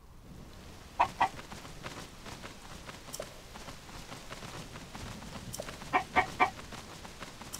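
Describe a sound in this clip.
A chicken clucks in short sharp bursts.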